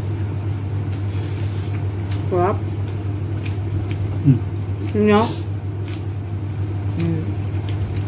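A young woman chews and munches food, close by.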